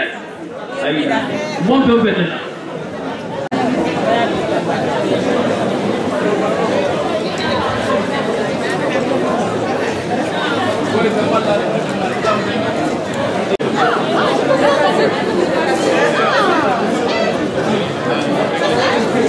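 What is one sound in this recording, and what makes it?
A crowd of women chatters all around in a large room.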